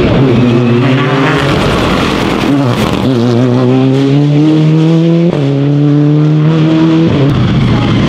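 A rally car engine revs hard and roars past, with sharp shifts between gears.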